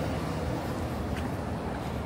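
A motor scooter passes by.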